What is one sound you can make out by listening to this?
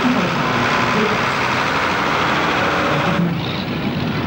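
A tractor engine roars loudly at full power.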